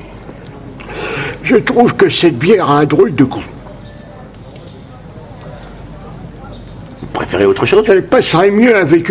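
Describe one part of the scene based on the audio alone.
An elderly man speaks slowly in a low, gruff voice, close by.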